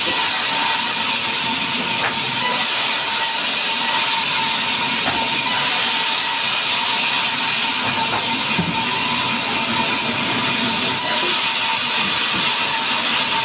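A band saw whines loudly and steadily as it cuts through a log.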